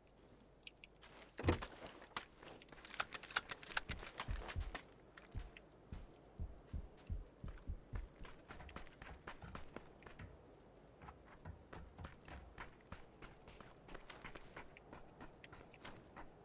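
Quick footsteps crunch over hard, gritty ground.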